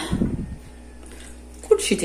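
Water pours from a glass into a metal pot.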